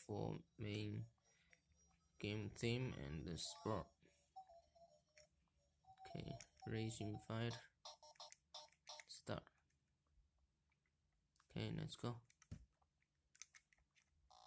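Buttons click on a game controller.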